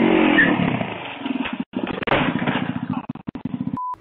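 A motorbike crashes onto concrete with a loud thud.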